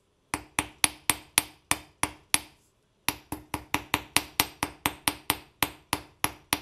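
A small metal hammer taps rapidly on metal wire against a steel block, with a bright ringing clink.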